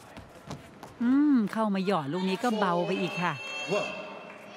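A young woman shouts loudly.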